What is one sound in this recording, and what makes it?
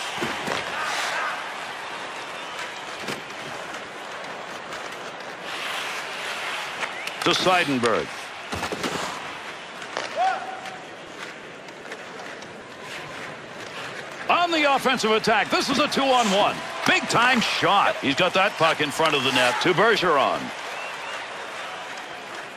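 Hockey sticks clack against a puck.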